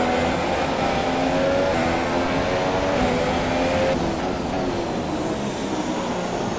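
A racing car engine whines loudly, rising and dropping in pitch as it shifts gears.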